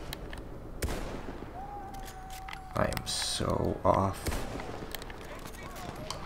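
A scoped sniper rifle fires single shots.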